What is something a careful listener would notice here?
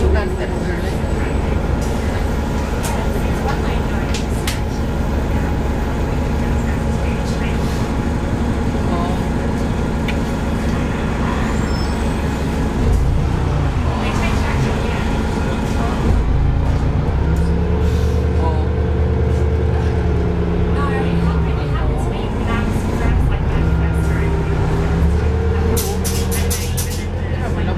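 A vehicle engine hums steadily inside a moving car.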